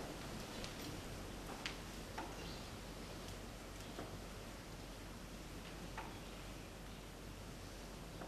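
Clothing rustles softly as many people bow down to the floor and rise again.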